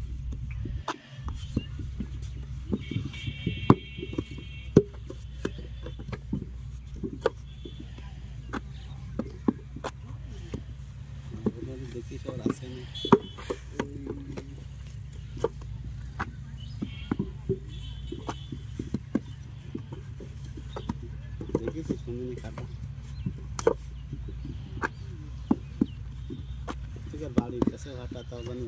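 Wooden brick moulds knock and thump on the ground.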